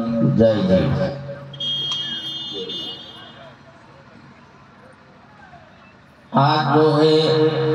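A crowd of men and women chants together.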